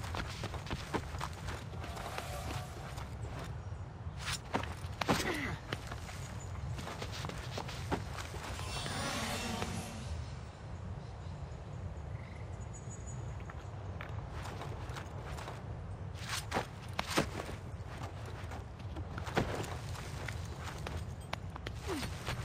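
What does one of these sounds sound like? Sharp thuds and scrapes sound as a figure climbs along stone walls.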